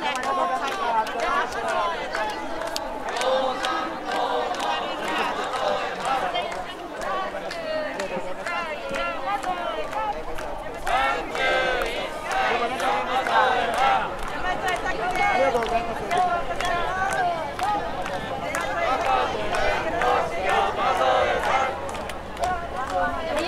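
A crowd of people chatters all around, close by.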